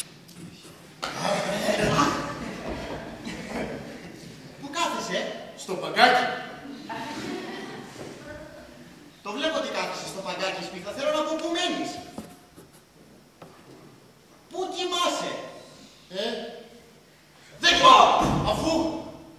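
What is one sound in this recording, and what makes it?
Young men speak with animation on a stage, heard from a distance in an echoing hall.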